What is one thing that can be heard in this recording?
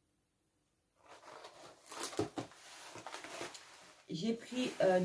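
Cardboard packaging rustles and scrapes.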